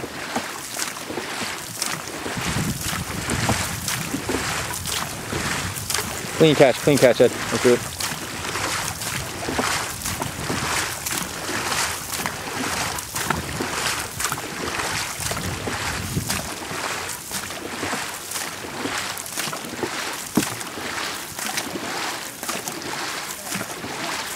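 Paddles splash and churn through water in a steady rhythm.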